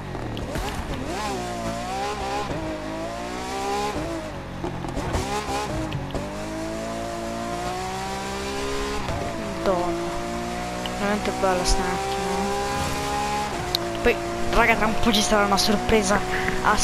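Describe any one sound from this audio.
A sports car engine revs high and roars as it accelerates, with the pitch climbing through each gear change.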